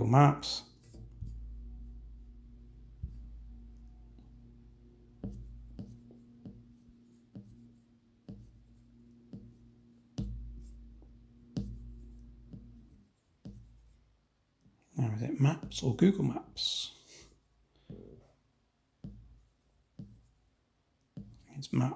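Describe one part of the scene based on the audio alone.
A finger taps on a phone's touchscreen.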